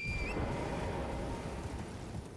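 A magical spell shimmers and chimes.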